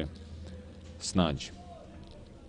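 A football is kicked with a single dull thud.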